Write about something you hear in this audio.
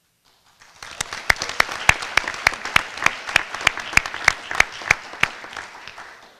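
A person claps loudly and steadily close by.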